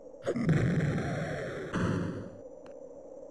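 A burst of noisy electronic game sound effects rushes at the start.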